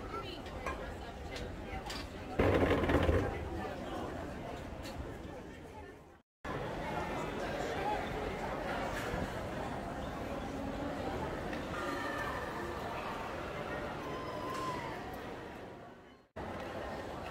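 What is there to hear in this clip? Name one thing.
Many people chatter in a busy outdoor street.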